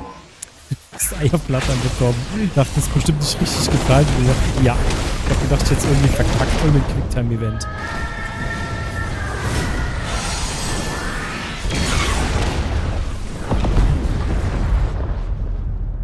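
Fiery explosions boom and roar.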